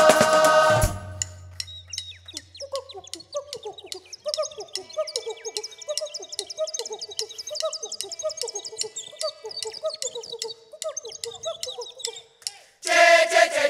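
A choir of women sings through loudspeakers.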